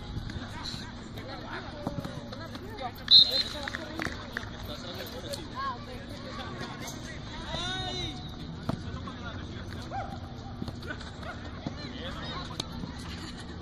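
Young players call out to each other across an open field outdoors.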